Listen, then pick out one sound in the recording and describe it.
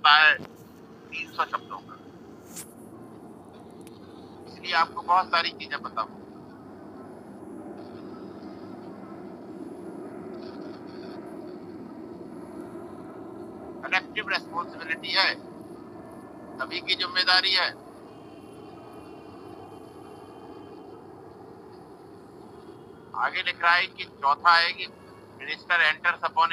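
A middle-aged man speaks in short bursts over an online call.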